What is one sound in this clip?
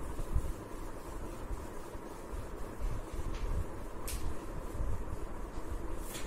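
A cloth rubs against a whiteboard, wiping it.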